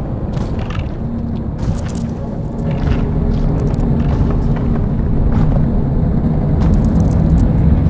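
Air bubbles gurgle and rumble underwater.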